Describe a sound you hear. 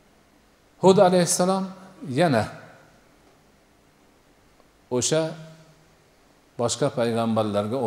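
An elderly man speaks slowly in phrases through a microphone, pausing between them.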